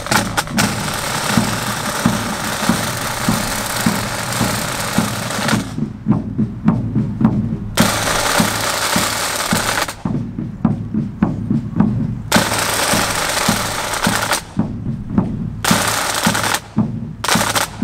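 A bass drum booms out a steady beat.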